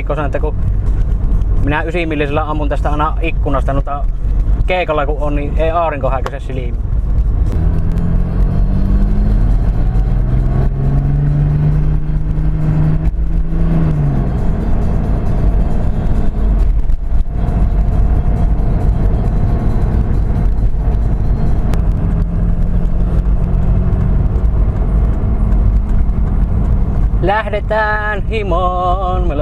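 A car engine hums steadily and revs up as the car speeds along.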